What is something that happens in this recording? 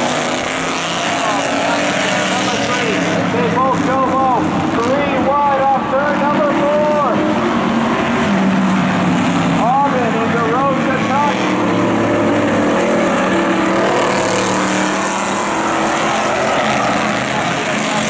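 Car engines roar and rev steadily.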